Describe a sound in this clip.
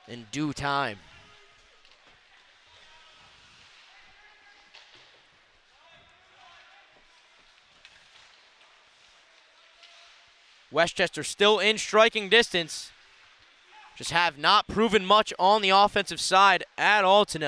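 Ice skates scrape across the ice in a rink.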